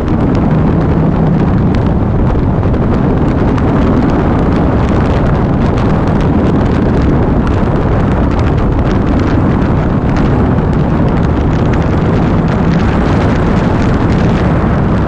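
Wind roars steadily past a moving motorcycle.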